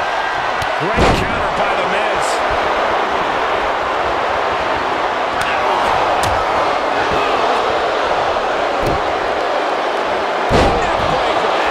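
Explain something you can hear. Bodies slam heavily onto a wrestling mat with loud thuds.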